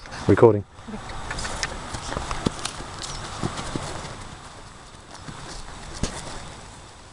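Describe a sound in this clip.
Horse hooves thud softly on dry grass.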